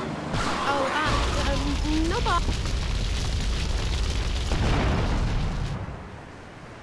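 Flames roar on a burning car.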